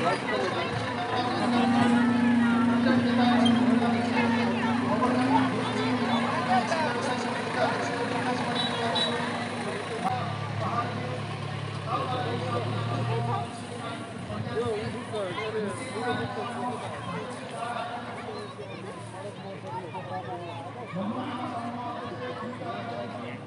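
A crowd of women chatters outdoors.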